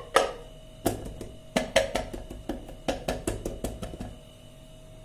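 Hands tap and pat on a rubbery cake mould.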